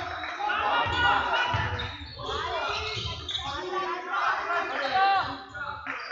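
A basketball bounces with dull thumps as it is dribbled.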